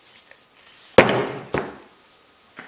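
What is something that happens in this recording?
An axe strikes wood with a sharp thud.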